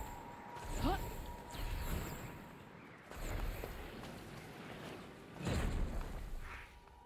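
Heavy thuds and scrapes sound as a person drops and lands on rock.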